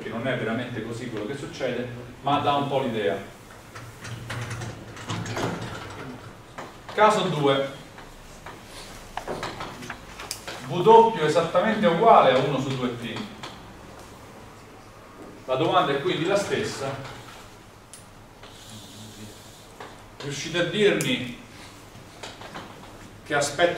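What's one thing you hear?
A man lectures calmly, in bursts with pauses.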